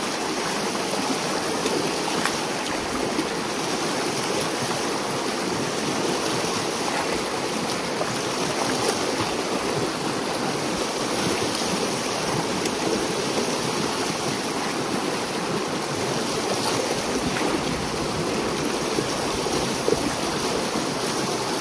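A rake scrapes and splashes through wet debris.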